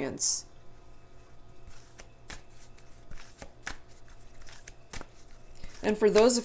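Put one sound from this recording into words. Playing cards shuffle with soft riffling clicks.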